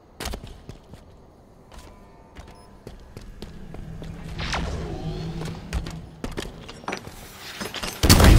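Footsteps clank on a hard metal floor.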